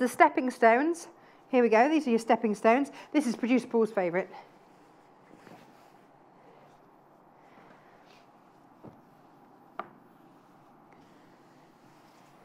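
Fabric rustles as a woman unfolds it.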